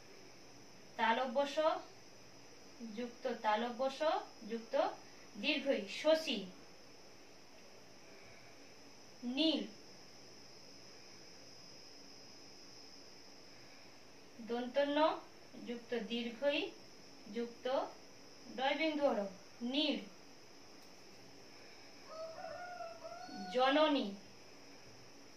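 A woman speaks calmly in short phrases, close by, as if teaching.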